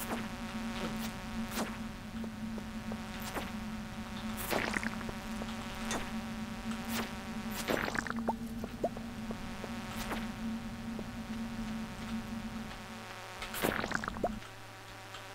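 Soft music plays steadily.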